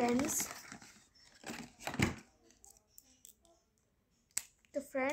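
A plastic wrapper crinkles as hands tear it open.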